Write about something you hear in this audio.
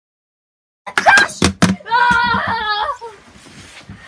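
A young boy shouts excitedly nearby.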